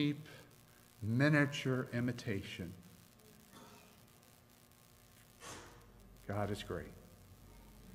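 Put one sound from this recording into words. A middle-aged man speaks calmly into a microphone, with pauses, in a room with a slight echo.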